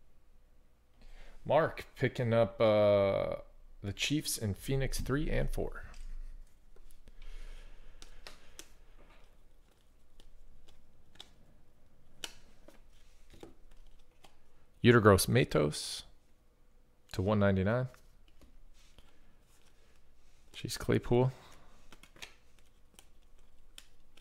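Stiff trading cards slide and flick against each other in a hand.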